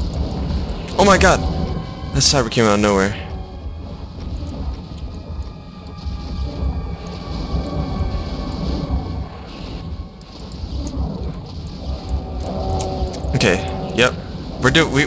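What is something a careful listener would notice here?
Monsters roar and shriek.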